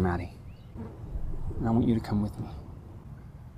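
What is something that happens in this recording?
A man speaks quietly and earnestly nearby.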